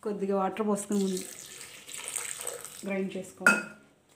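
Water pours into a plastic blender jar.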